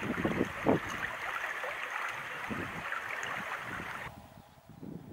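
A stream of water rushes and gurgles close by.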